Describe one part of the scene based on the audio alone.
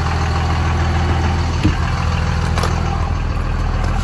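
A truck door latch clicks open.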